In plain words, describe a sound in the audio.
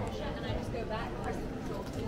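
A woman talks on a phone nearby.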